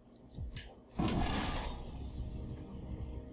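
A sliding door whooshes open.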